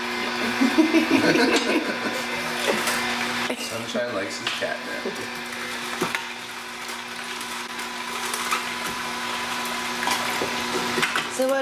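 A juicer crunches and grinds vegetables.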